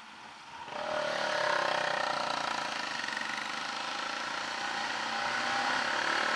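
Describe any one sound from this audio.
Another motorcycle's engine revs close ahead.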